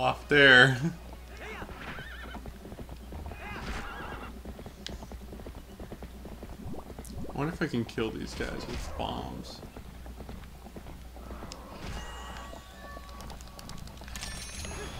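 A horse's hooves gallop over the ground.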